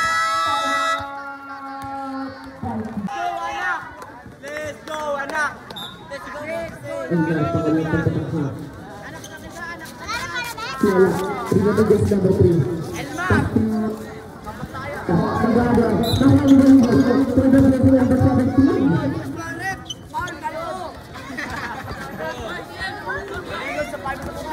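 A crowd of young people shouts and cheers outdoors.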